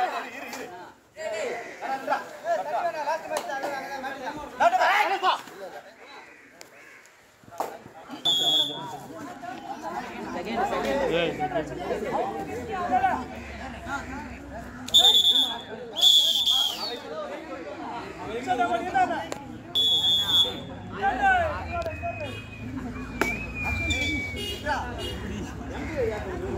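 Young men shout and chant outdoors.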